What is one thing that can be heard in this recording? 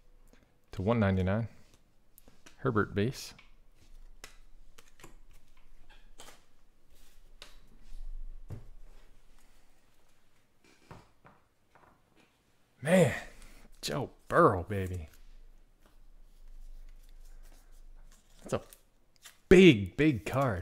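Trading cards slide and flick between fingers.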